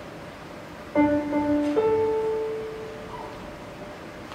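A piano plays a few short starting notes.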